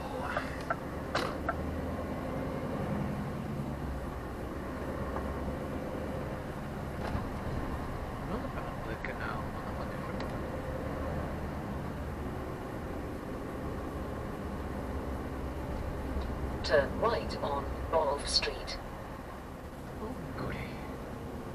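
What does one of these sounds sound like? A bus engine hums steadily while driving along a road.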